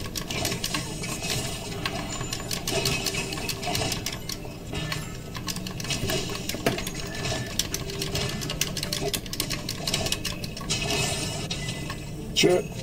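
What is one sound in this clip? Video game combat sounds clash and thud rapidly.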